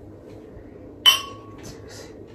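Two wine glasses clink together.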